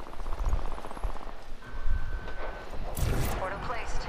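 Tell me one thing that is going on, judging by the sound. A portal opens with a whooshing hum.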